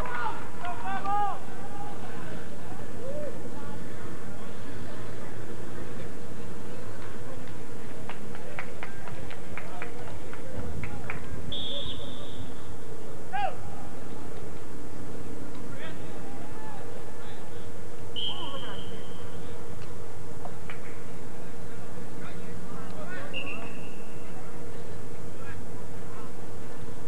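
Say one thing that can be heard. Players shout to each other across an outdoor field.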